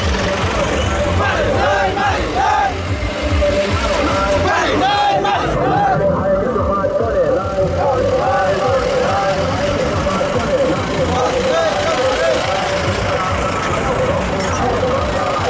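A crowd of young men chants and cheers from the trucks.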